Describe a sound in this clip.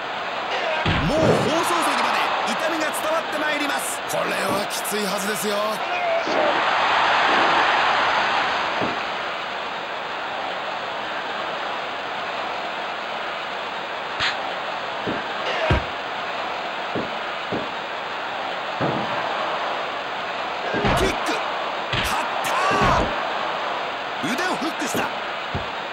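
Bodies thud heavily onto a wrestling mat.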